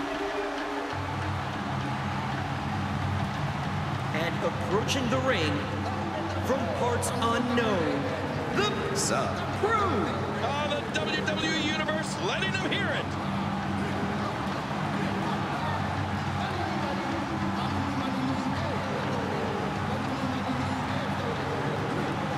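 Loud music with a heavy beat plays over loudspeakers.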